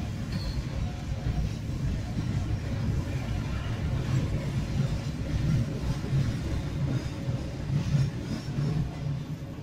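A passing train rumbles and clatters steadily over the rails close by.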